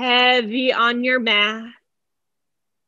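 A woman chants a few drawn-out notes in a calm voice close by.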